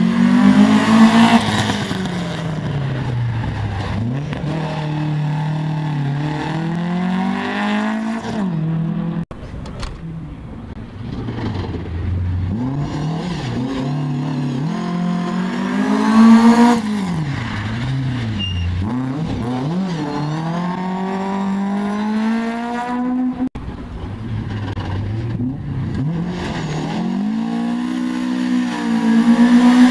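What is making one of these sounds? Rally car engines roar and rev hard as they race past, rising and falling in pitch.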